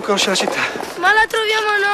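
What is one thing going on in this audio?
A young boy speaks.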